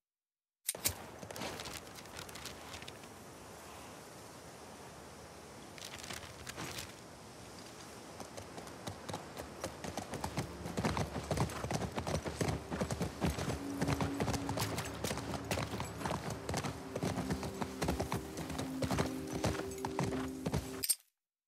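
A horse's hooves clop on hard ground and speed up to a gallop.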